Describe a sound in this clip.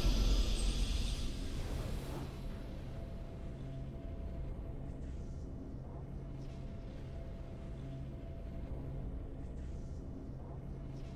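A triumphant video game fanfare plays.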